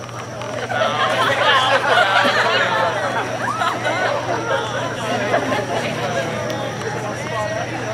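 A group of young men and women sing together outdoors.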